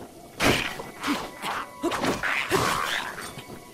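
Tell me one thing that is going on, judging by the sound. A creature grunts as it is hit.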